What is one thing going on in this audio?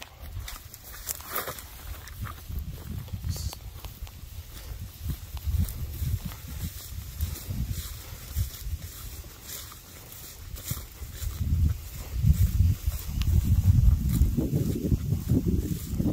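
Footsteps swish through tall wet grass.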